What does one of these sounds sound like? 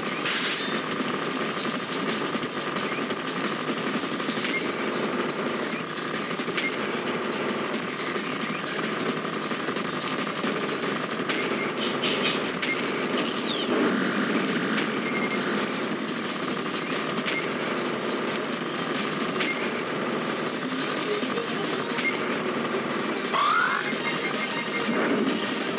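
Rapid electronic shots fire continuously in a video game.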